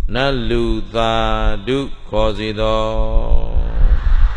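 A man chants in a steady, drawn-out voice through a microphone.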